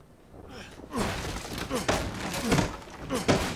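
A wooden crate splinters and breaks apart.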